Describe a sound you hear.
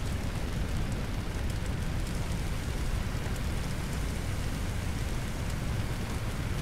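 A jet of water hisses from a hose.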